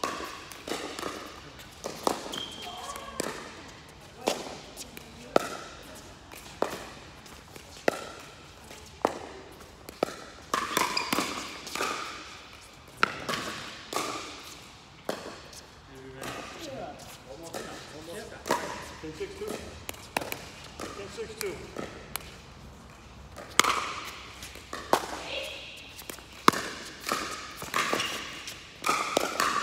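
Men call out and talk during play in a large echoing hall.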